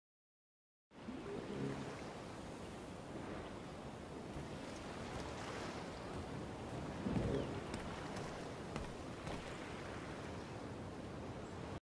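Waves lap gently against a wooden dock.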